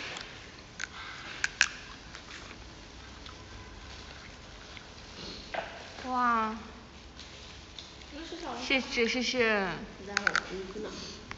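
A young woman bites and chews food.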